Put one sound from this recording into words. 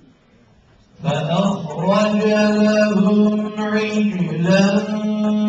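A young man chants loudly in a long, wavering, sustained voice close by.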